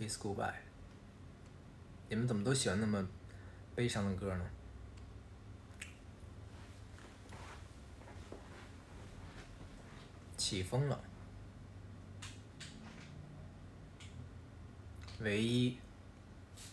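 A young man speaks softly in short bursts, close by.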